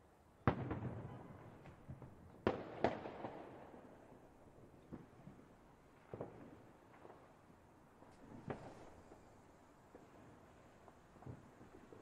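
Fireworks burst with loud booms that echo and rumble away.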